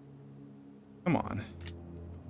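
A pistol magazine clicks into place.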